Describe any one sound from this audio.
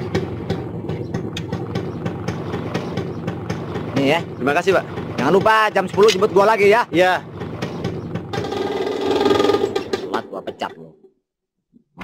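A motor rickshaw engine idles and then drives away.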